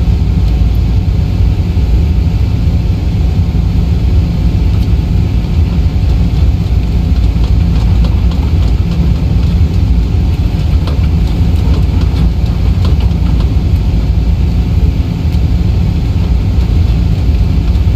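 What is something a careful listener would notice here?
Jet engines rumble low and steady.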